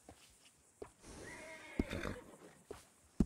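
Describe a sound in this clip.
A horse snorts and nickers softly.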